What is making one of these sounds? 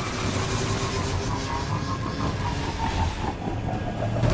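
A hovering vehicle's engine hums and whines steadily.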